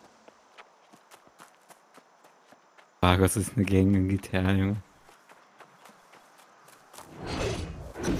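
Footsteps crunch steadily over leaves and undergrowth.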